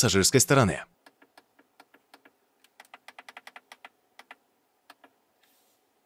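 Buttons click softly as they are pressed.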